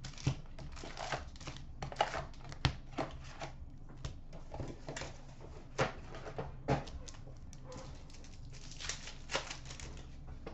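Plastic wrappers crinkle and rustle as hands handle card packs.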